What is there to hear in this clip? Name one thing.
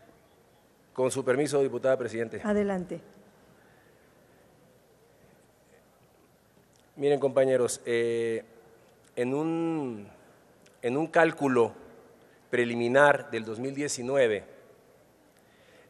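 A man speaks into a microphone over a loudspeaker in a large echoing hall, with pauses.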